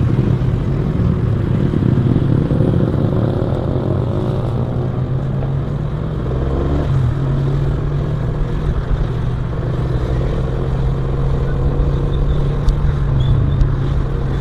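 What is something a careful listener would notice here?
A scooter engine hums steadily up close.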